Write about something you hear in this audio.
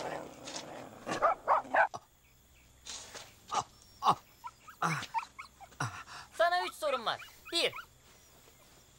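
A young man speaks with alarm, close by.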